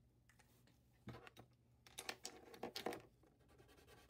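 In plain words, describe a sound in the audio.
An easel board knocks and rattles as a hand shifts it.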